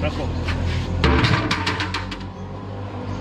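A large metal tray clanks against a metal pot.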